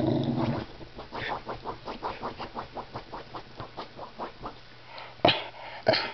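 A corgi scratches and digs at couch cushions.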